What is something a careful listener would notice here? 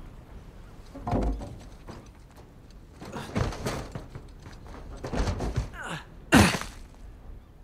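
Heavy thuds land on a metal roof.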